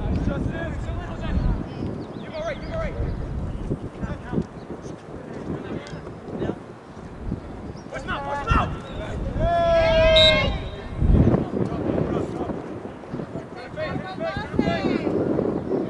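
Young women shout and call to each other on an open field, heard from a distance.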